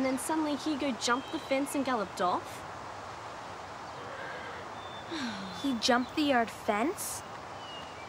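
A young girl speaks earnestly nearby.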